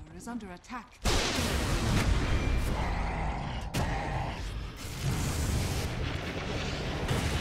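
Weapons clash and thud in combat.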